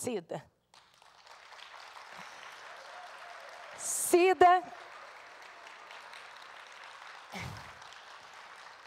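An audience applauds steadily.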